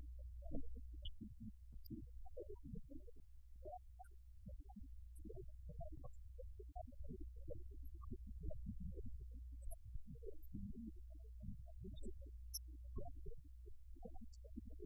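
A middle-aged man speaks calmly and steadily through a microphone.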